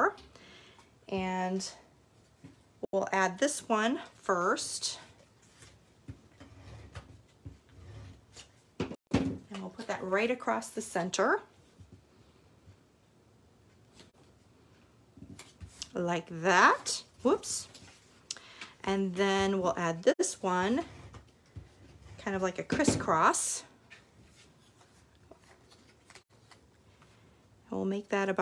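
Paper rustles and scrapes as hands handle it.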